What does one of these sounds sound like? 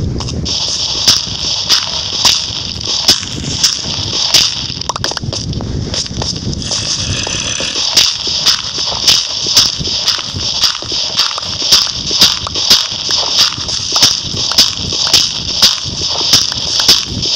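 Dirt and stone crunch again and again in a quick, steady rhythm as they are dug away.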